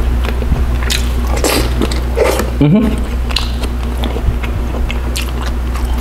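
A man chews food wetly close to a microphone.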